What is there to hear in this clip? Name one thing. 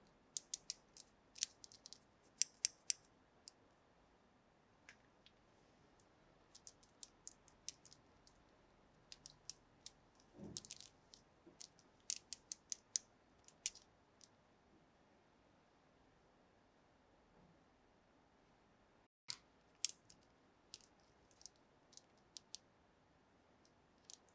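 Small plastic toy pieces click and tap against each other.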